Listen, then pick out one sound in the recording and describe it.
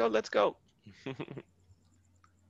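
A man laughs through an online call.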